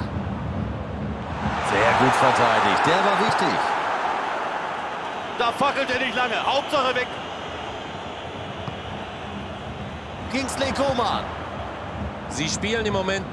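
A stadium crowd roars and cheers steadily, swelling and then easing off.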